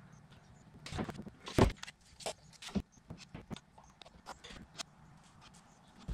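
A plastic bottle bumps and clicks against hard plastic.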